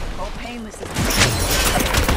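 Gunshots and explosions blast close by.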